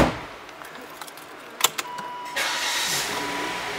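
A key clicks as it turns in a car's ignition.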